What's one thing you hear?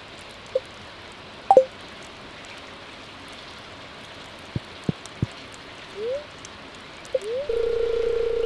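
A game menu blips and chimes.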